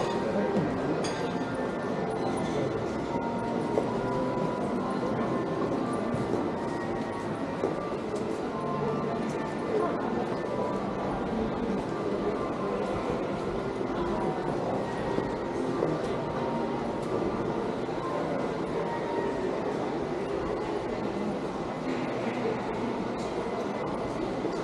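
Footsteps tap on a hard floor in a covered arcade.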